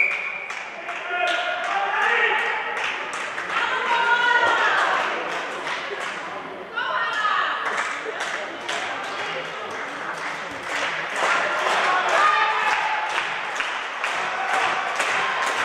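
Young women shout and call out to each other across the hall.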